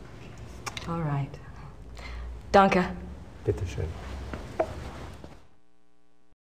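A woman answers in a soft voice.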